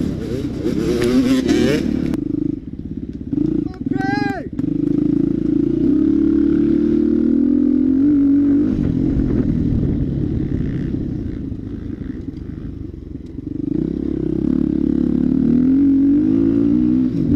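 A dirt bike engine revs hard and drones up and down close by.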